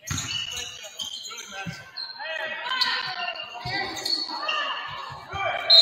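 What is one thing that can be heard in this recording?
A crowd murmurs and calls out in an echoing gym.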